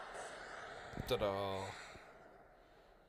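A short victory chime rings out.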